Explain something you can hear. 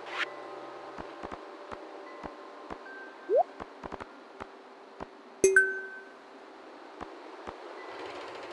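Soft clicks sound as items are picked and placed.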